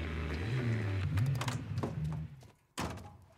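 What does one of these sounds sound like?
A car engine idles with a low rumble, then cuts off.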